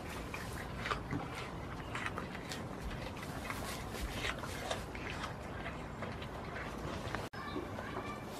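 A goat munches and crunches feed from a plastic tub close by.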